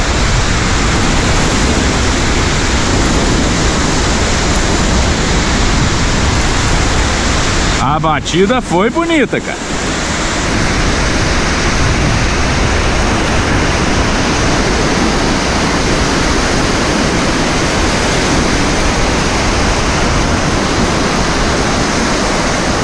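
Surf breaks and washes onto a sandy beach.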